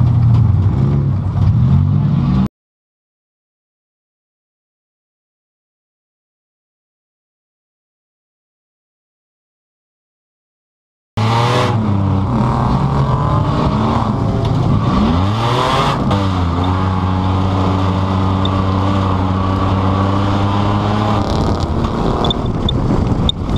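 A racing car engine roars loudly up close, revving up and down as gears change.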